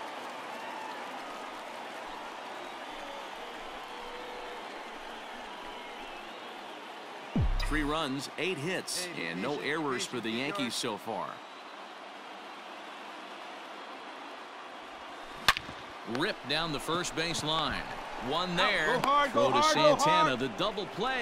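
A stadium crowd murmurs.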